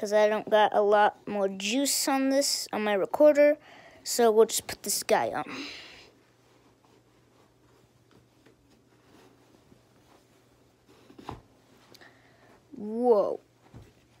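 Shoelaces rustle as they are tugged tight.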